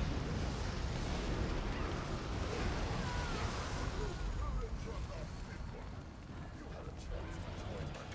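Game spell explosions crackle and boom.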